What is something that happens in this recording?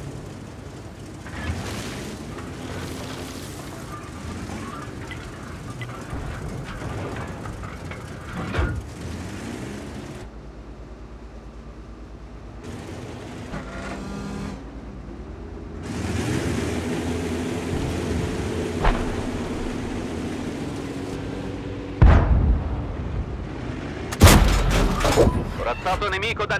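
Heavy tank engines rumble and clank steadily.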